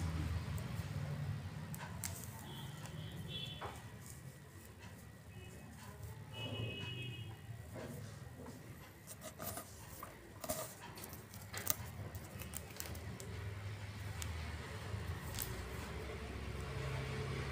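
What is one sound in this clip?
Hands rustle through long hair.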